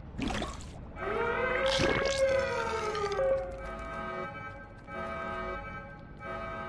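An alarm siren wails with rising and falling tones.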